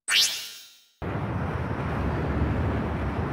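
Jet engines roar as an airliner flies overhead.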